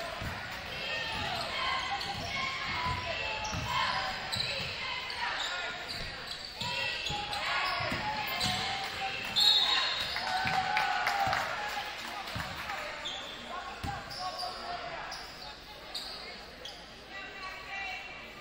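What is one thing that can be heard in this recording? A basketball bounces on the court with dull thuds.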